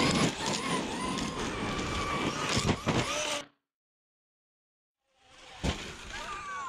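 A small electric motor whines, rising and falling in pitch.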